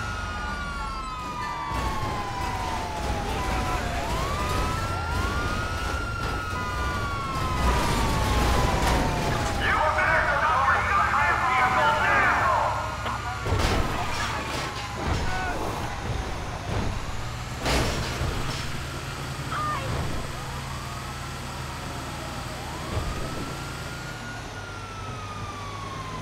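A heavy truck engine rumbles steadily as the truck drives along a road.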